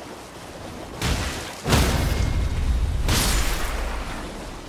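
Heavy blows thud and crash against a creature.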